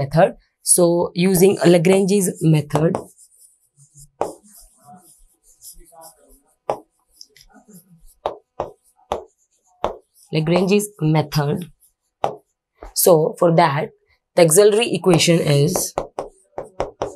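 A young woman explains calmly into a close microphone, with pauses.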